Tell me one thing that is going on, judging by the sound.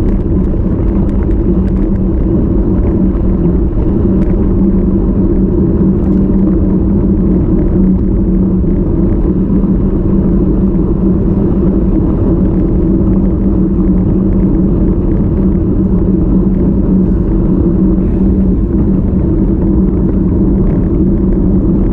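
Bicycle tyres hum and rumble on a paved road.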